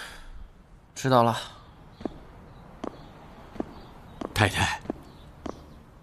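A young man answers quietly nearby.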